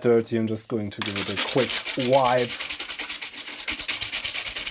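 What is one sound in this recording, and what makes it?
A hand brushes quickly over rows of plastic keys, making a rapid rattling tick.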